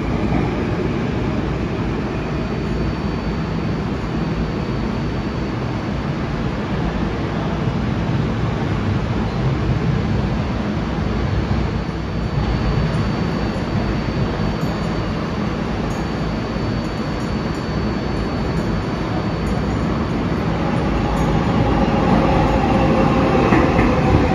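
A subway train rumbles loudly through an echoing underground station.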